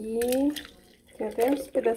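Liquid pours into a glass jar.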